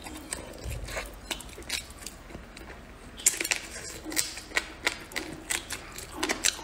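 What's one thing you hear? Crispy batter crackles as fingers tear a piece of fried chicken.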